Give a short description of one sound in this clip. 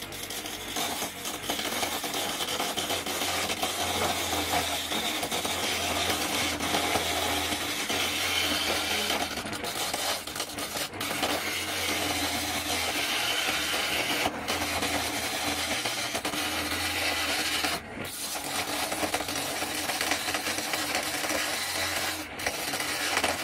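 A chisel scrapes against spinning wood.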